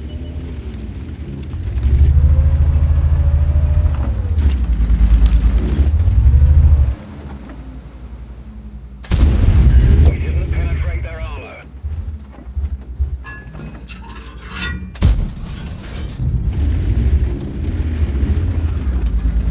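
A tank engine rumbles deeply and revs up and down.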